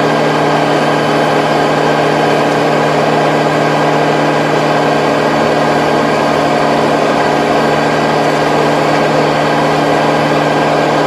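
A tractor engine drones steadily and loudly close by.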